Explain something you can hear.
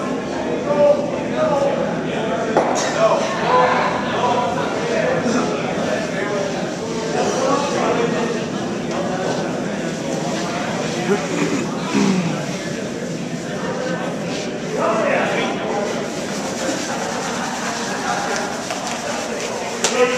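Many people talk and call out in a large echoing hall.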